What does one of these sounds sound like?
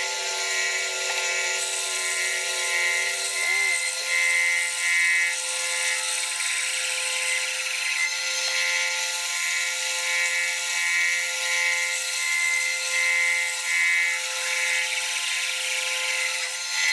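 A band saw blade cuts through wood with a pulsing whine.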